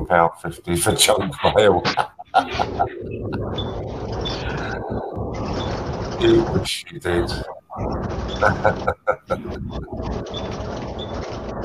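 A middle-aged man talks and laughs over an online call.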